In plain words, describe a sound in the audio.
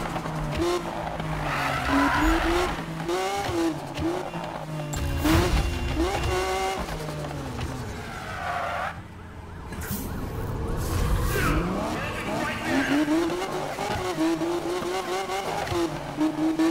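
A sports car engine roars and revs as it speeds along.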